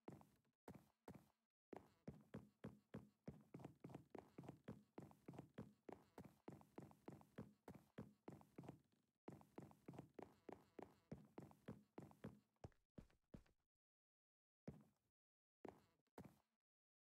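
A game character's footsteps tap quickly on wooden planks.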